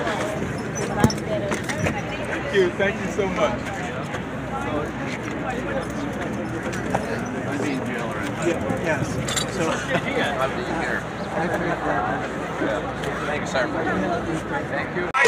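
A crowd of adults chatters outdoors.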